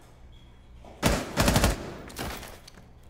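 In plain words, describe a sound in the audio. Gunfire rattles in loud, short bursts.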